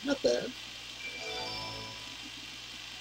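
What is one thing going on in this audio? A short electronic game chime rings.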